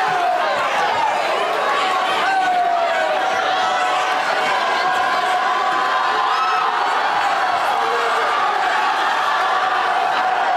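A crowd of young men and women cheers and shouts loudly nearby.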